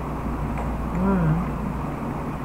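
A middle-aged woman hums briefly with her mouth closed, close by.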